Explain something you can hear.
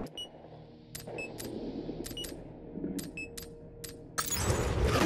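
Menu selections click and beep.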